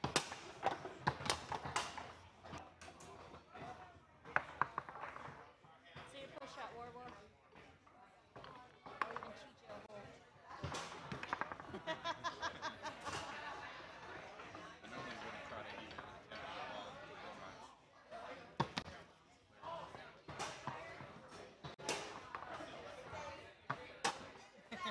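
Foosball rods clack and the ball knocks sharply against the table.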